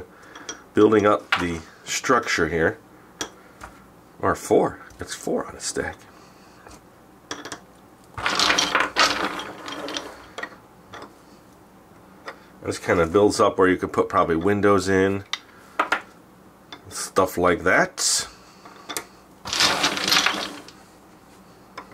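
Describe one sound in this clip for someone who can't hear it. Wooden blocks click and knock together as they are fitted.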